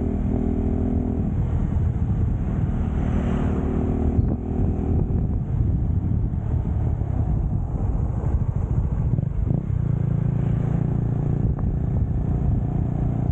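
A motorbike engine hums steadily at close range.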